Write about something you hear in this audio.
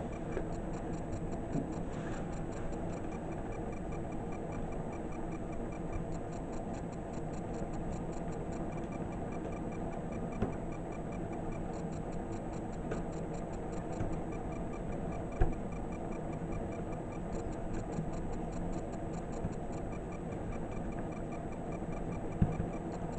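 Small flames crackle and hiss softly as fabric burns.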